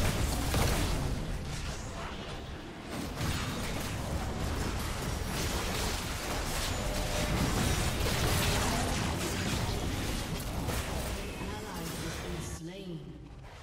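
Magic blasts and blows crash and crackle in a busy fight.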